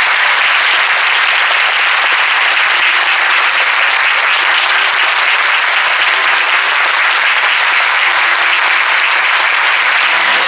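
A large crowd claps loudly and steadily.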